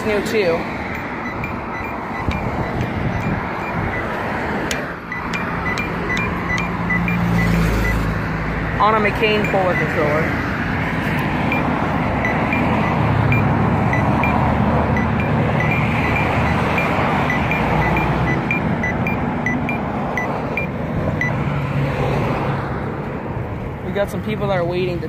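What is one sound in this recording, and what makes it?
A crosswalk signal ticks steadily and rapidly.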